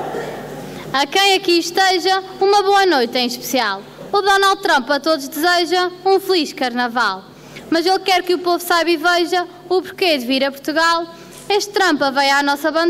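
A woman speaks through a microphone and loudspeakers, reading out with expression.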